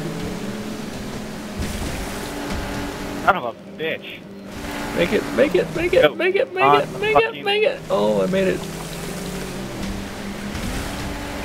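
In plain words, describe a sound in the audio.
A motorboat engine hums steadily.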